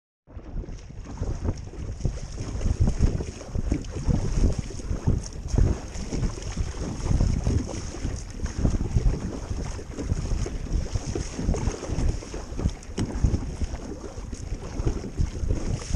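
Small waves lap against a kayak's hull.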